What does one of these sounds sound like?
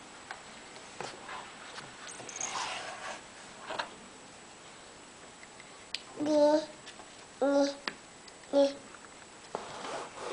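Cardboard puzzle pieces tap and click on a board.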